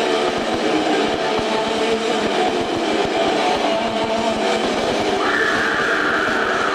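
A loud distorted electric guitar plays heavy chords.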